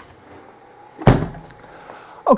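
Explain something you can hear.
A freezer lid shuts with a thud.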